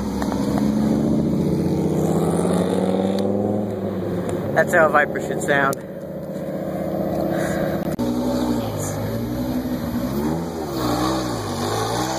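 A sports car engine rumbles loudly and revs up and down.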